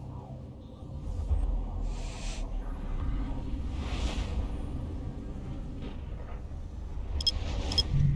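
A deep rumbling whoosh swells as a spaceship jumps into warp.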